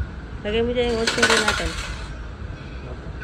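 Coins clatter into a metal tray.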